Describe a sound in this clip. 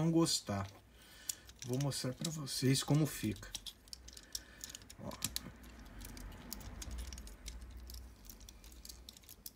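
Plastic toy parts click and snap.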